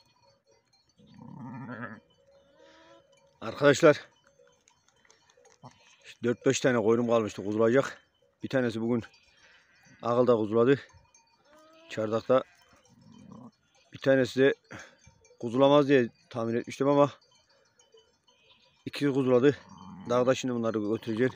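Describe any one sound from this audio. A sheep bleats loudly and repeatedly close by.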